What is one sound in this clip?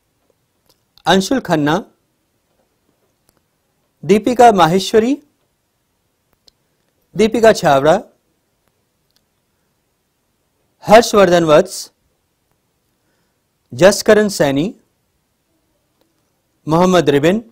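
A man reads out names one at a time through a microphone, with pauses between them.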